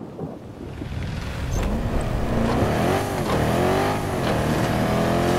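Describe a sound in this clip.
An armoured vehicle's engine rumbles and revs as it drives.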